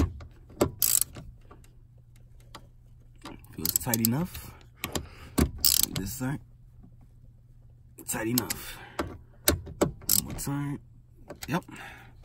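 A socket wrench ratchets and clicks against metal.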